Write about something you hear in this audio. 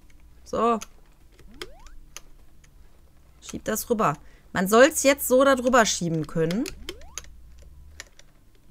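Short electronic game sound effects beep and chirp.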